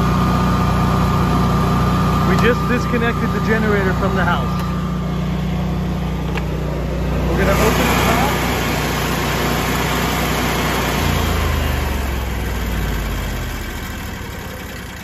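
A generator engine hums steadily up close, then winds down and stops.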